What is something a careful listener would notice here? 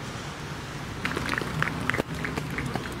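A group of players claps their hands.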